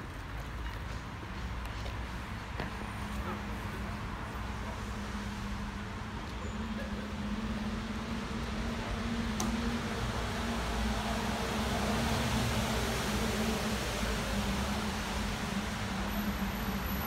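Tyres hiss on wet asphalt.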